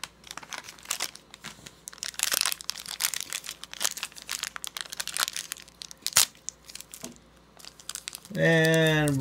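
A plastic candy wrapper crinkles and rustles as it is torn open.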